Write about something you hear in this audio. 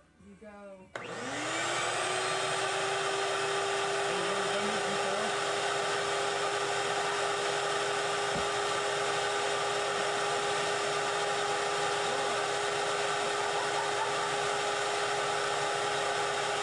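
A vacuum motor starts up and whirs loudly and steadily.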